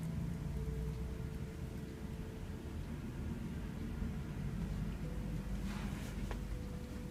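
Hands rub and knead oiled skin with soft, slippery strokes.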